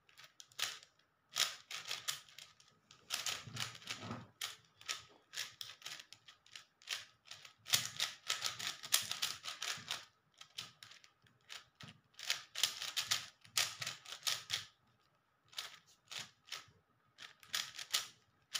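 A plastic puzzle cube clicks and clacks in quick bursts as its layers are twisted.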